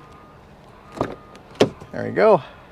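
A car door handle clicks open.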